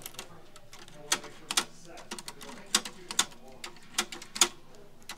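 Keys on a mechanical adding machine click sharply as they are pressed.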